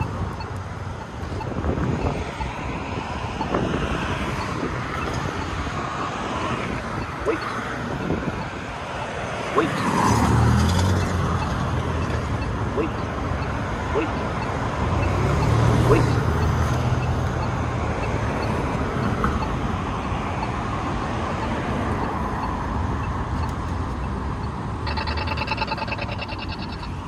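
Traffic rumbles past on a nearby road outdoors.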